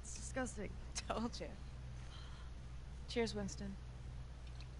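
A teenage girl speaks casually, close by.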